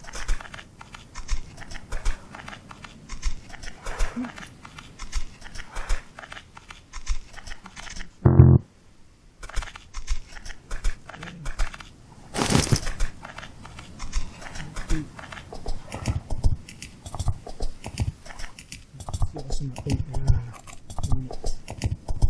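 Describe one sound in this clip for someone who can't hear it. Footsteps crunch on sand at a steady walking pace.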